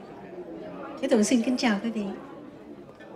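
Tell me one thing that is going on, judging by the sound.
A woman sings into a microphone, heard over loudspeakers in a room.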